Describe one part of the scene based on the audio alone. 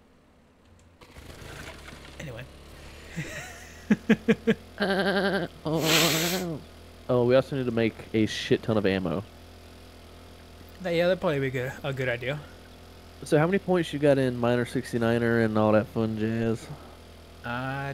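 A small motorbike engine hums steadily.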